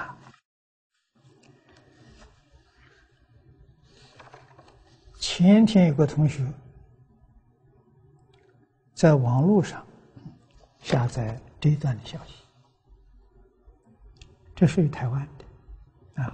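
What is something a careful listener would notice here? An elderly man speaks calmly and slowly into a microphone, in short phrases with pauses.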